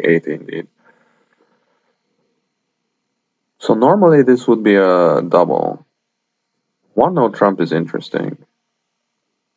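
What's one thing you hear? A young man talks casually and close to a microphone, in short bursts.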